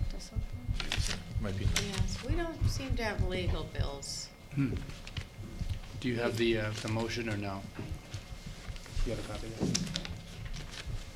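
A woman talks calmly over a microphone.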